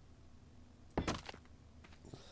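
A heavy object thuds into place.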